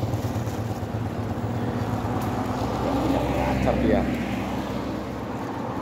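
A motorcycle engine hums as it rides by.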